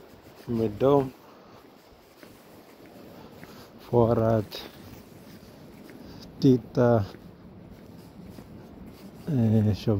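Footsteps tread on a paved path outdoors.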